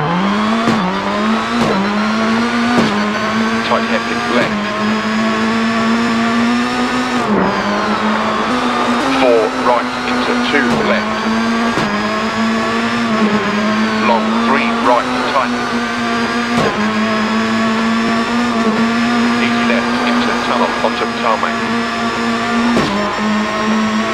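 A car engine roars steadily, dipping briefly in pitch as it shifts gears.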